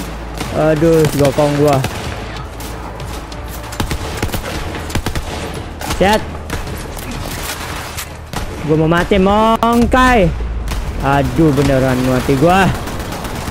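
Rapid gunfire rattles and cracks.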